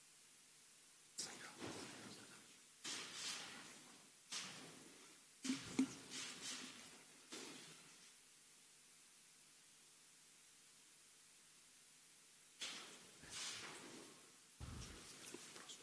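Pens scratch on paper.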